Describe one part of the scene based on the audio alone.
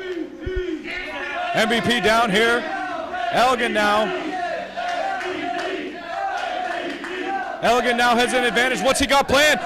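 A crowd shouts and cheers loudly in an echoing hall.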